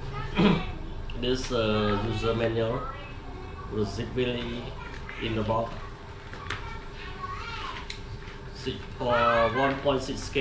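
Paper rustles as pages are flipped.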